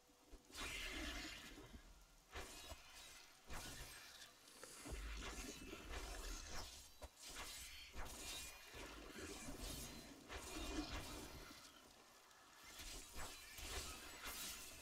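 Video game combat effects clash and burst.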